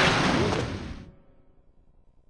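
Loud video game battle effects crash and then quickly die away.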